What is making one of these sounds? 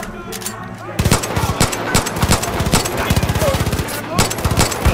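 A pistol fires shot after shot in quick succession.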